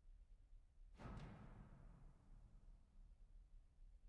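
A piano chord is struck and rings out, then fades.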